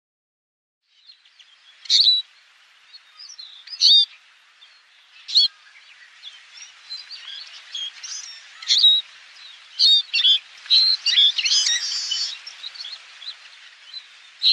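Small birds chirp and twitter in quick bursts.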